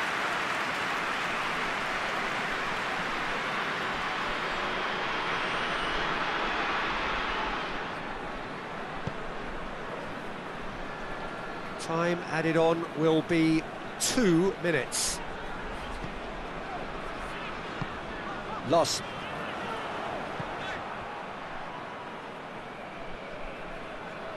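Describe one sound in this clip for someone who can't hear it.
A stadium crowd roars steadily, then quietens.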